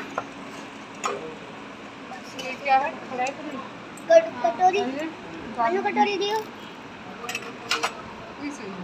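A metal spoon clinks against steel dishes.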